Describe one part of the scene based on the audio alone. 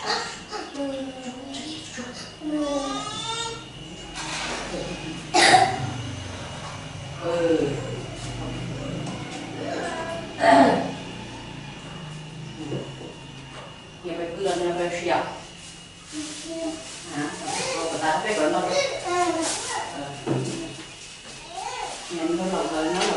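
A woman talks calmly to a child nearby.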